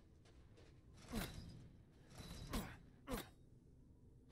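An iron gate rattles and creaks as it swings open.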